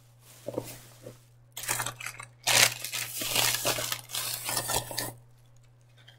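A thin plastic bag crinkles and rustles as it is handled.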